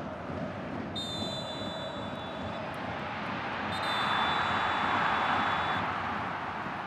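A referee's whistle blows long shrill blasts twice.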